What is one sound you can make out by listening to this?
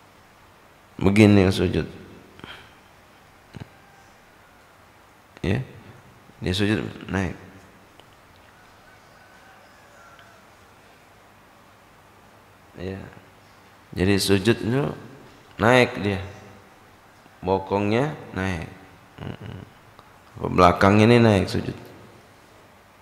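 A man speaks emphatically into a microphone in short bursts with pauses.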